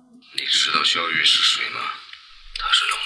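A man speaks with distress nearby.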